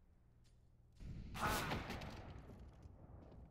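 Gunshots crack in a short burst.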